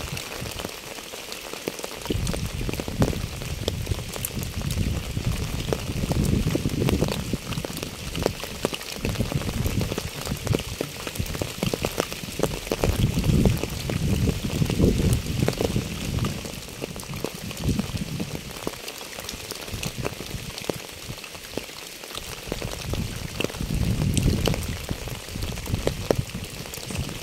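Rain patters steadily on wet pavement and fallen leaves.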